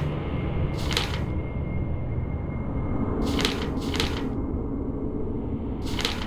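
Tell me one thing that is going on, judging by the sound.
A soft whoosh sounds several times.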